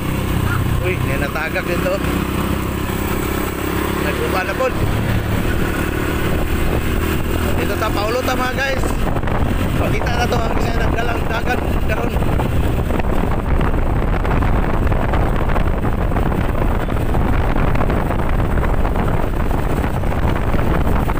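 Bicycle tyres roll and hum on a concrete road.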